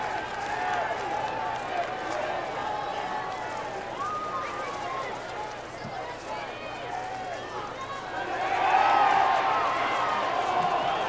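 A large crowd of spectators chatters and shouts outdoors.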